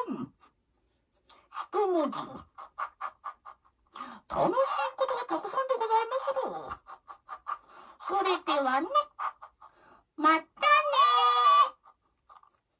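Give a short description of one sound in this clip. An elderly woman sings loudly and closely into a microphone.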